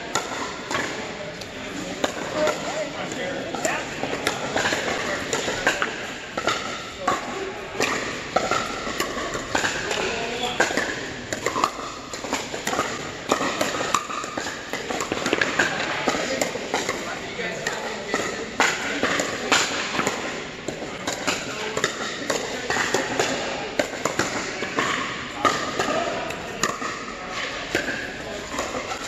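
Several adults chatter and call out across the hall.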